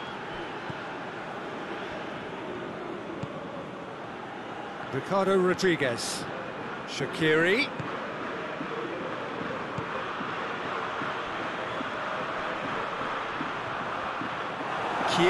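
A football is kicked on grass.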